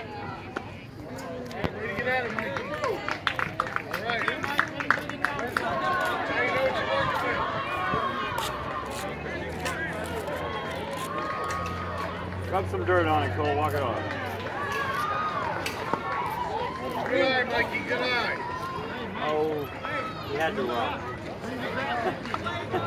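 Adults and children shout and cheer from nearby.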